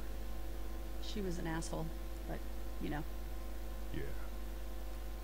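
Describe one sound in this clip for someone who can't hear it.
A young woman speaks quietly and calmly.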